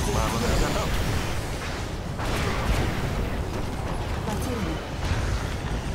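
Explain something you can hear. Energy beams crackle and hum as they strike the ground.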